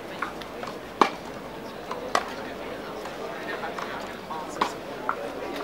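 A tennis ball is struck sharply with a racket, again and again.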